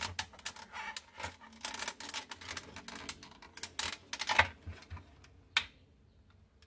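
Plastic parts creak and scrape close by as they are pried apart.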